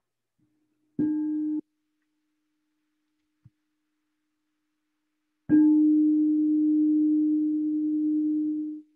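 A metal bowl is struck and rings with a deep, lingering hum.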